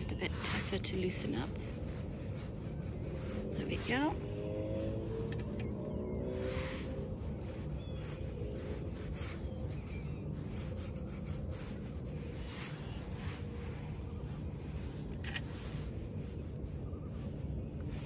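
A paintbrush dabs and swishes softly on paper.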